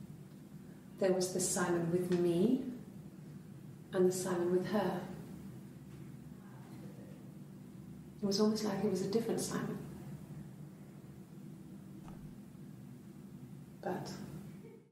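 A young woman speaks softly and hesitantly through a recording.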